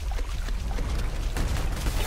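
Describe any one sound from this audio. Water splashes under running feet.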